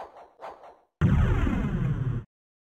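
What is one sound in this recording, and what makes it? A loud low rumble booms and fades.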